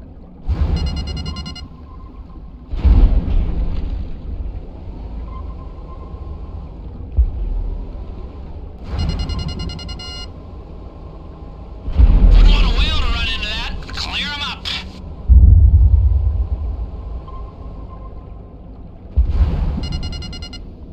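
A submarine's motor hums steadily underwater.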